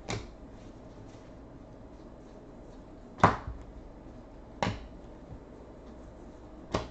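Trading cards shuffle and snap sharply in someone's hands.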